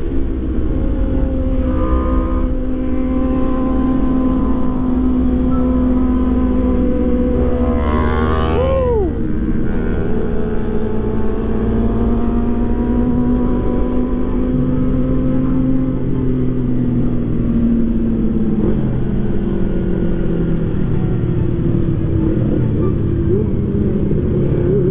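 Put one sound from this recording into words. A motorcycle engine hums steadily while riding, shifting pitch as it speeds up and slows.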